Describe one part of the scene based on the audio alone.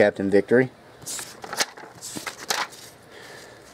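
A sheet of paper rustles and crinkles close by.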